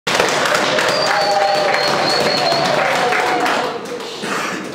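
A group of people applaud loudly.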